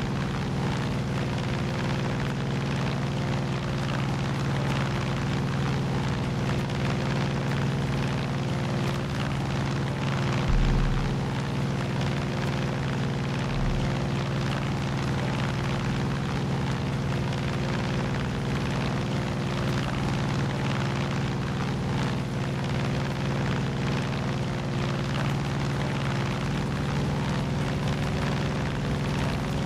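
A small propeller plane's engine drones steadily up close.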